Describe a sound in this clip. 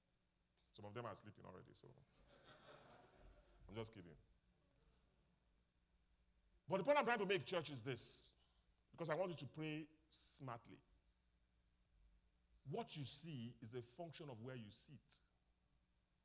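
A man speaks with animation through a microphone in a large room.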